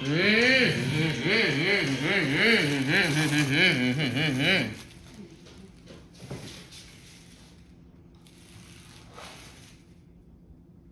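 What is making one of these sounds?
Toy truck wheels scrape softly through sand.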